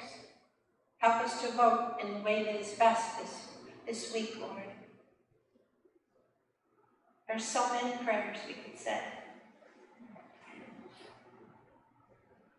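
A middle-aged woman speaks solemnly through a microphone in an echoing hall.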